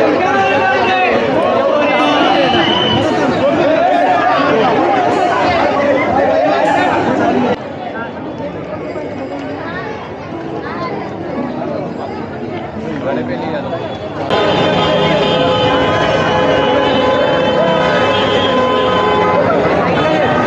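A large crowd of men and women chatters and shouts all around.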